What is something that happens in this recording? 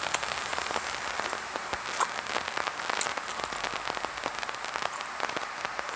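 A young woman sips a drink with soft slurps.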